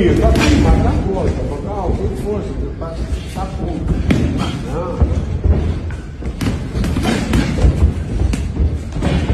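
Boxing gloves thud in quick punches.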